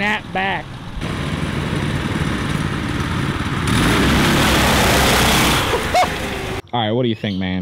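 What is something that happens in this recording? Several small engines roar loudly as a go-kart drives up.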